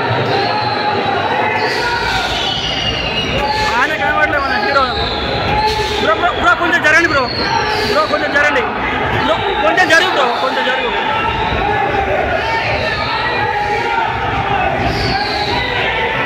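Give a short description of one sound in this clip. A crowd of men talks and shouts loudly all around, close by.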